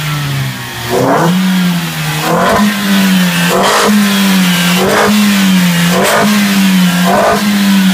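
A car engine revs in short bursts.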